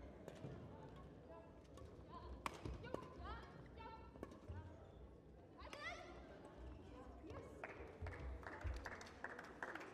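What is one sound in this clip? Rackets strike a shuttlecock in a quick rally.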